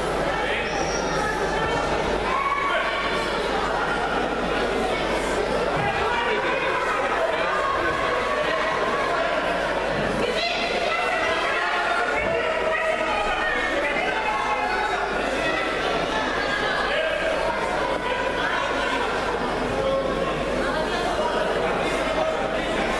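A crowd of spectators chatters in a large echoing hall.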